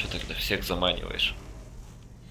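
Flames crackle and burst.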